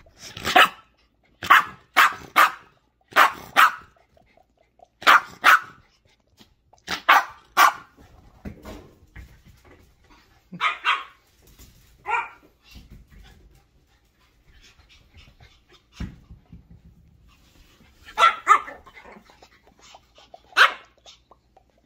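A small dog barks sharply, close by.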